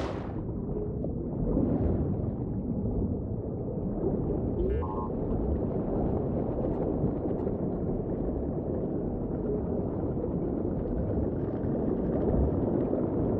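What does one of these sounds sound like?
A deep, muffled underwater rumble churns steadily.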